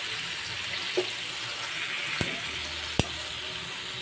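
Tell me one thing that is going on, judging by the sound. Metal tongs click against a pan.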